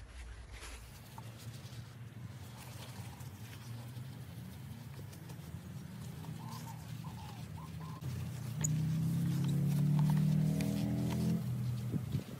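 A cloth rubs against a plastic headlight lens.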